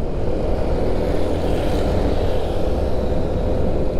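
A passing scooter buzzes close by.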